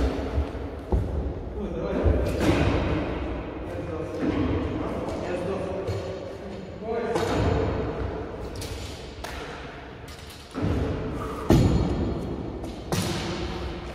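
Wooden practice swords clack together in a large echoing hall.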